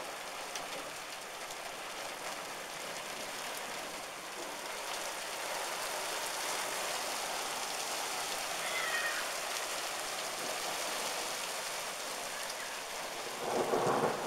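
Hailstones drum on the metal of parked cars.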